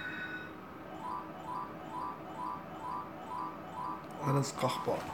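A slot machine counts up a win with quick repeated beeps.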